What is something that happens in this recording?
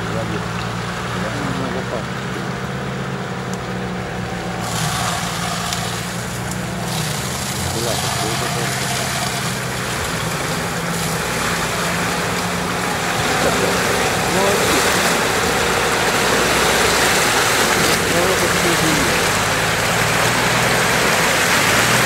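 Muddy water splashes and sloshes around tyres.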